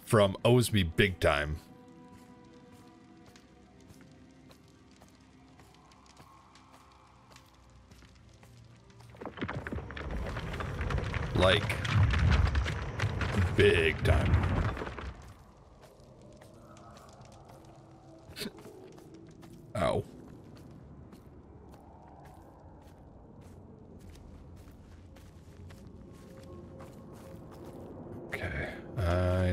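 Footsteps tread slowly on stone.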